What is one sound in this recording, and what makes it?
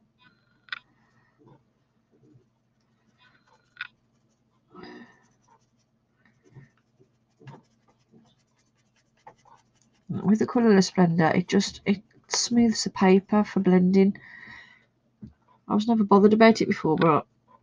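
A soft pastel scratches and rubs across paper.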